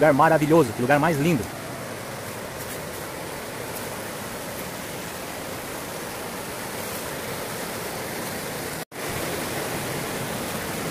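Water rushes steadily over rocks in a stream outdoors.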